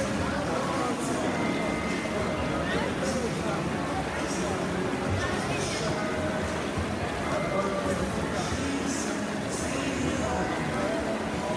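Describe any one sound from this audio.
Swimmers splash through the water with steady strokes.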